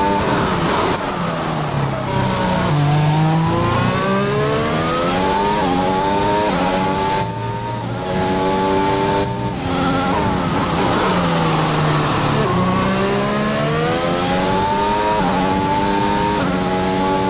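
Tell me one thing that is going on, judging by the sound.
A racing car engine revs high, rising through the gears and dropping as it brakes.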